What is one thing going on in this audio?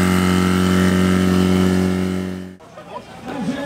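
A pump engine hums steadily.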